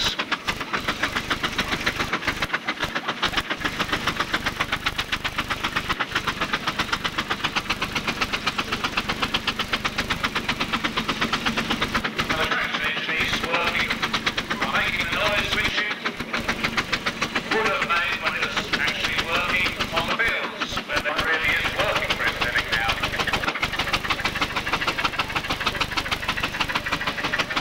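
A steam traction engine chuffs rapidly and steadily.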